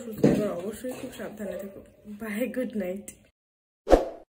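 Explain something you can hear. A young woman speaks warmly and close to the microphone.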